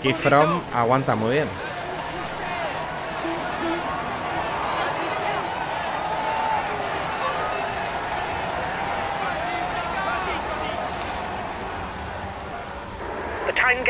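A roadside crowd cheers and shouts.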